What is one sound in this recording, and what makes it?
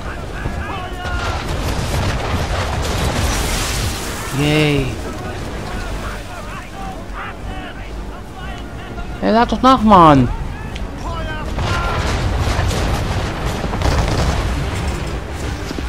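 Waves rush and wash against a ship's hull.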